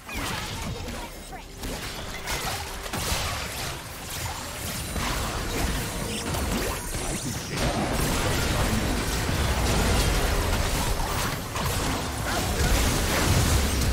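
Game spells and attacks crackle and burst in a fast fight.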